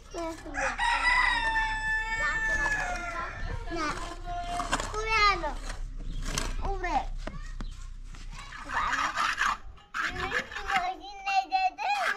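Young children talk and call out excitedly nearby.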